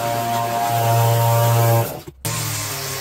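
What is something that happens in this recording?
A petrol leaf blower roars loudly.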